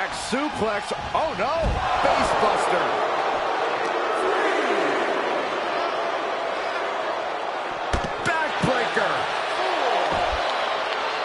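Heavy bodies slam against the ring with loud thuds.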